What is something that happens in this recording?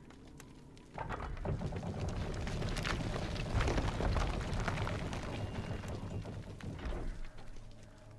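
Heavy stone doors grind and rumble as they slide open.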